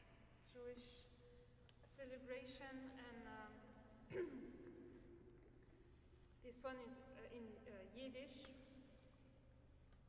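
A young woman speaks calmly in a large echoing hall.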